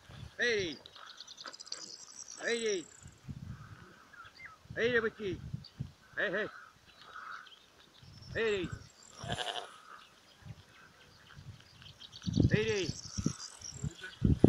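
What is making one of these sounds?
Cows moo repeatedly across an open field.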